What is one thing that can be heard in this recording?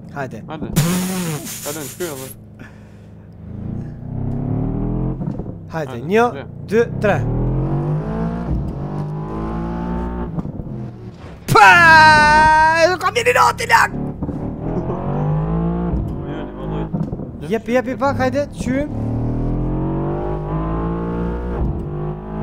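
A car engine revs up and down through gear changes.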